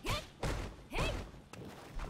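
An energy blast whooshes and bursts.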